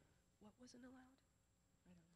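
A young woman speaks softly into a microphone.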